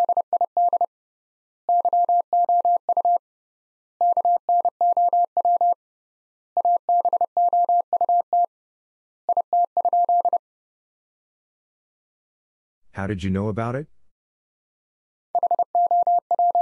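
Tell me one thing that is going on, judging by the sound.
A telegraph key taps out Morse code as short and long steady beeps in bursts.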